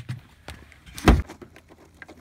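A cooler lid thumps open.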